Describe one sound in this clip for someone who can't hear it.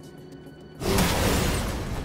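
Electric energy crackles and sparks.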